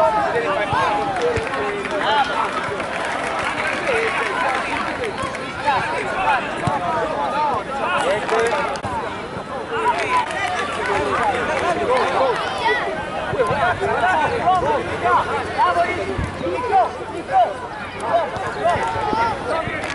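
A crowd of children and adults shout and chatter outdoors.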